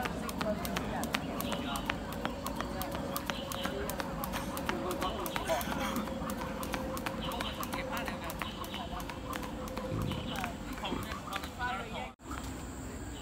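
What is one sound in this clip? A skipping rope slaps the pavement in a quick, steady rhythm.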